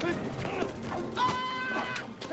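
Children laugh loudly.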